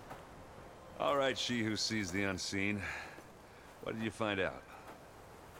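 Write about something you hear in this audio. A man speaks calmly in a deep voice, close by.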